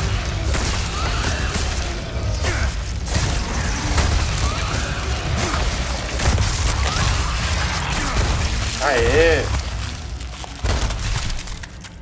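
Flesh squelches and tears in loud, heavy blows.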